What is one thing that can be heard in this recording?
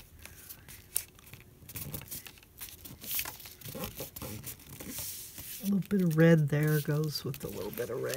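Hands rub and smooth paper down with soft scraping.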